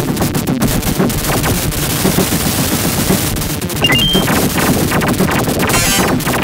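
Upbeat arcade game music plays.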